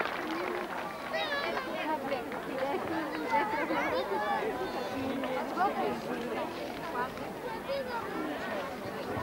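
A crowd of men and women chatters and calls out.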